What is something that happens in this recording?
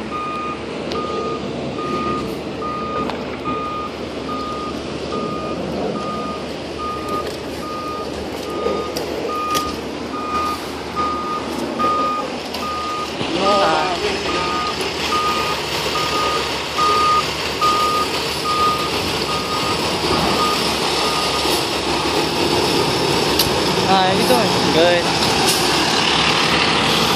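A fire truck's diesel engine rumbles nearby.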